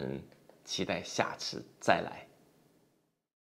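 A middle-aged man speaks warmly and close to a microphone.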